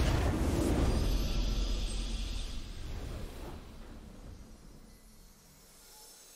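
A triumphant game victory sound swells loudly and slowly fades away.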